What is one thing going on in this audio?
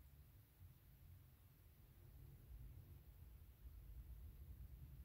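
A stick swirls softly through wet paint.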